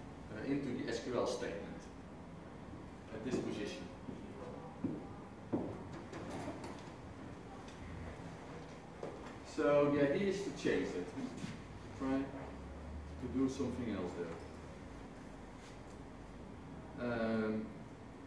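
A man speaks to an audience in a room with some echo, pausing often.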